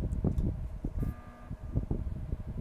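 An electronic game alarm sounds briefly.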